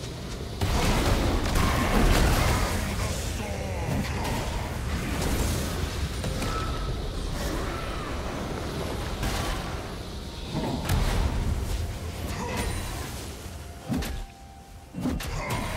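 Sharp game hits and bursts land in quick succession.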